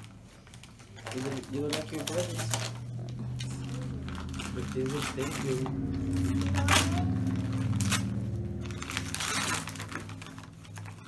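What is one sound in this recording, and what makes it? Wrapping paper crinkles and tears close by.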